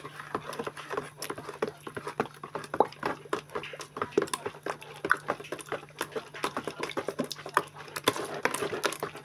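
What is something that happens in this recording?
Water sloshes and splashes as it is stirred in a plastic bowl.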